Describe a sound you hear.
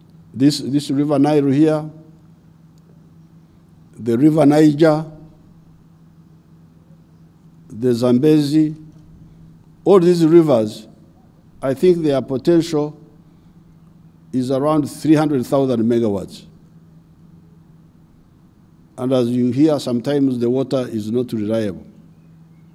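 An elderly man speaks slowly and deliberately through a microphone and loudspeakers, in short phrases with pauses.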